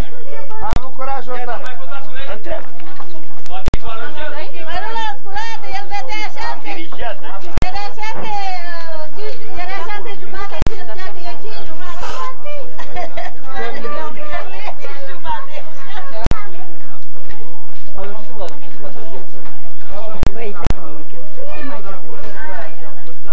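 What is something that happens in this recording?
Several men and women talk over one another nearby, outdoors.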